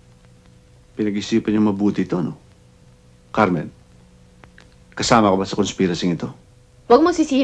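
A man speaks calmly and seriously nearby.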